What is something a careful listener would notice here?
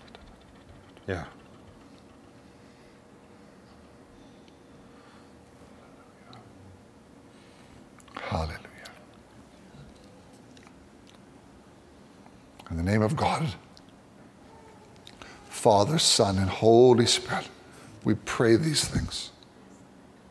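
A man speaks quietly in a low voice, with long pauses.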